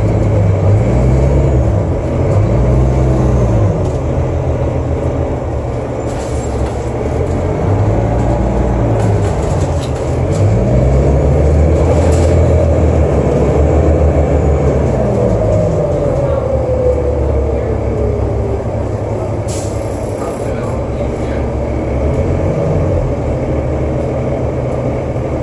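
A bus engine rumbles and whines steadily as the bus drives along.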